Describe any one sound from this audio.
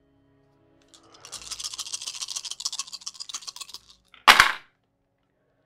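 Dice rattle in a cupped hand and clatter onto a table.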